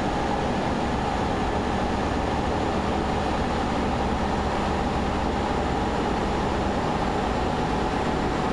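A truck engine hums steadily while driving at speed.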